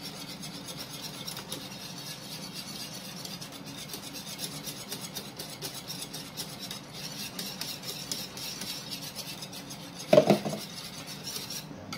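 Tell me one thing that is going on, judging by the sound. A spoon stirs liquid in a metal saucepan.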